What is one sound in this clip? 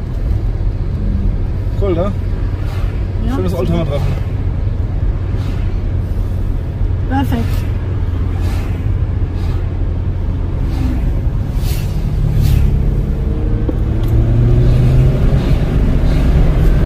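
A car engine hums steadily with tyres rumbling on the road from inside the car.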